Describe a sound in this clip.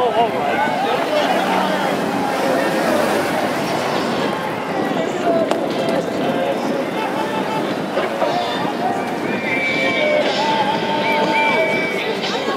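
Cars drive slowly past on a street.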